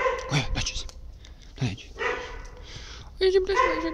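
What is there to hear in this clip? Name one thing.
A dog's paws patter on pavement.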